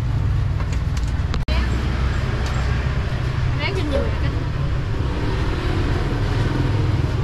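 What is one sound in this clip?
Steady low street noise hums throughout.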